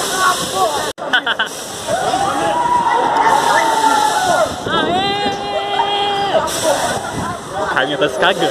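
A young man sings and shouts loudly close by.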